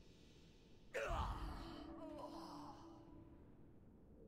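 A short game sound effect swooshes and chimes.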